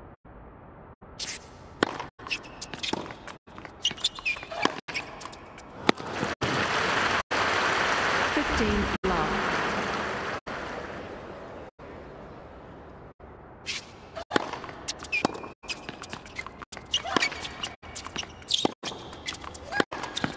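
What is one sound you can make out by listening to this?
A tennis ball is struck sharply by rackets, back and forth.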